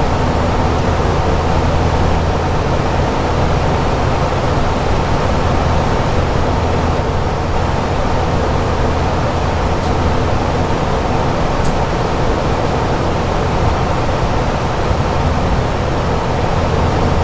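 A jet airliner's engines drone steadily from inside the cockpit.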